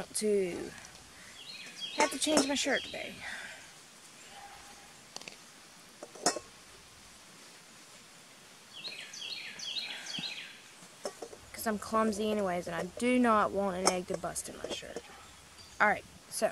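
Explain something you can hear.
A young woman talks quietly and closely.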